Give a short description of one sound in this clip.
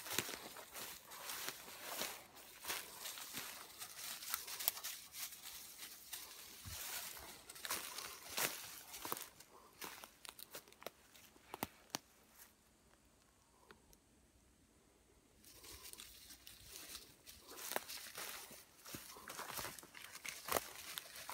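A small animal's paws patter and rustle through dry leaves.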